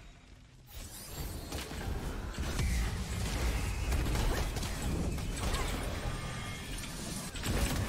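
Fighting sound effects clash and burst loudly.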